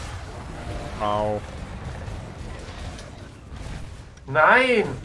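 A huge beast roars loudly.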